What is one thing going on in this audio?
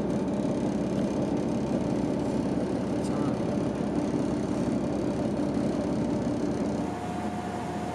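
A car engine hums steadily, heard from inside the car.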